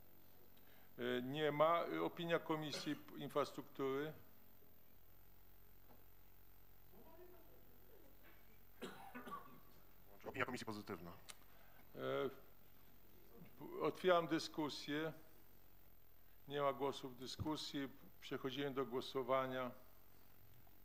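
A man speaks calmly over a microphone in a large room, with pauses.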